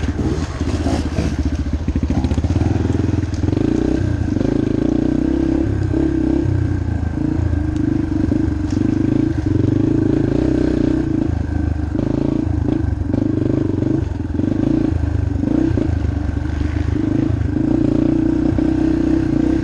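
Tyres crunch over dirt and twigs.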